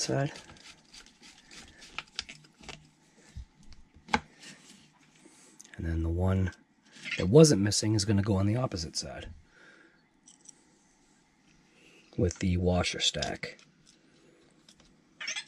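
A metal hex driver clicks and scrapes against small screws.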